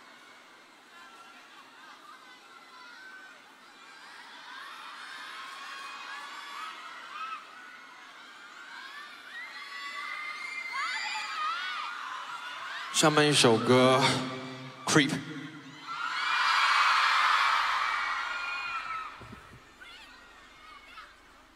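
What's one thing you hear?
A large crowd cheers and whistles in a big arena.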